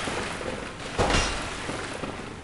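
A blade swings with a heavy whoosh and thud.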